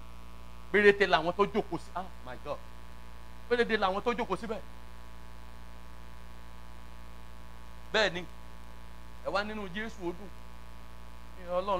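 A man speaks through a loudspeaker in short, emphatic bursts with pauses between them, echoing in a hall.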